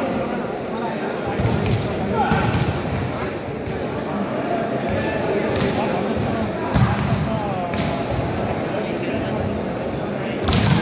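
A large crowd cheers and chatters in an echoing indoor hall.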